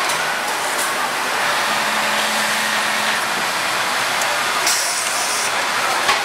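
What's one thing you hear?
A sewing machine stitches rapidly.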